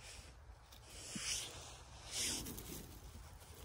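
Hands rustle softly among dry twigs and pine needles.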